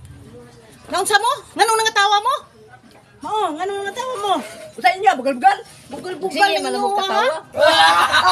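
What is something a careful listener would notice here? A middle-aged woman speaks with feeling, close by.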